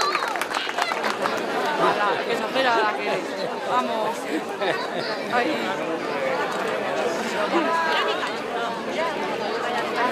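A crowd of men and women chatter and call out loudly outdoors.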